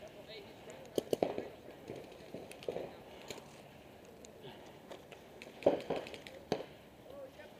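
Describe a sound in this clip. Paintball markers fire with sharp pops nearby.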